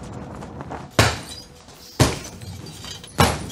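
Boxing gloves land punches with heavy thuds.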